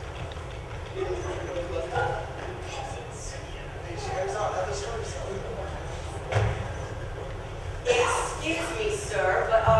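A young man speaks with animation in a large echoing hall.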